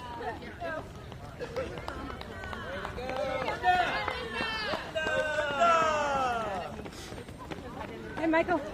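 Many runners' footsteps patter on pavement.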